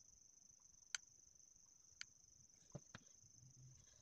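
Small plastic parts click and tap together.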